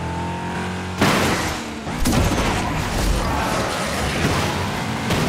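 A nitro boost whooshes loudly.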